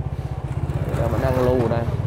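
A motorbike engine hums as it rides past close by.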